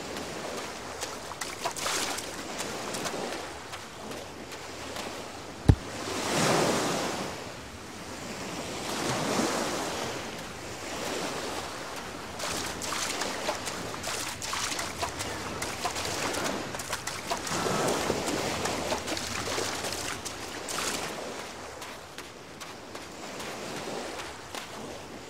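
Bare footsteps pad quickly across sand.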